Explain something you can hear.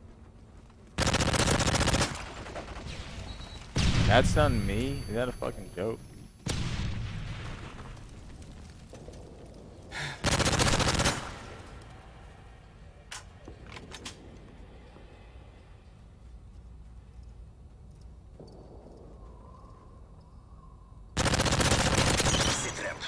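Gunfire bursts out loudly in rapid rattling volleys.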